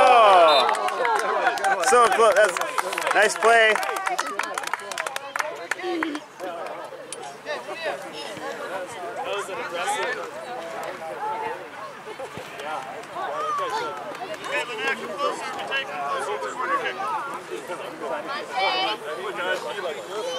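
Young children shout and chatter excitedly nearby, outdoors.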